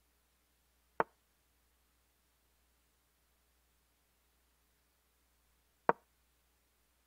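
A short wooden click sounds as a chess piece is moved, twice.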